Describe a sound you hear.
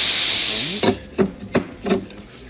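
A metal wrench clinks against metal.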